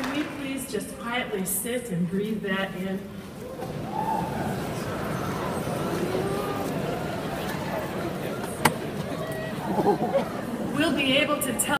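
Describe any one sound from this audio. Young people nearby talk and shout excitedly.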